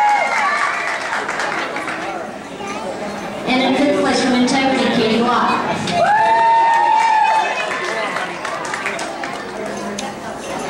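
A woman announces through a loudspeaker in a large echoing hall.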